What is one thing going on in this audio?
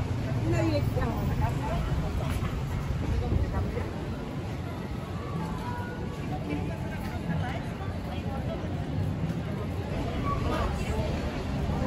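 Many people chatter in a lively crowd outdoors.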